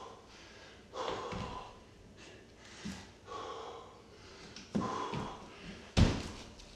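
A man breathes out hard with each push-up.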